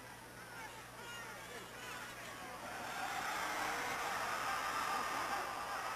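A large stadium crowd cheers and roars, swelling louder.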